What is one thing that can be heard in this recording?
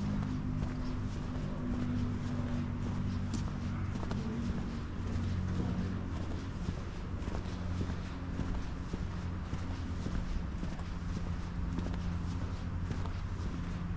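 Footsteps tap steadily on pavement outdoors.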